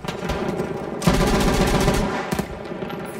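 A machine gun fires a rapid, loud burst.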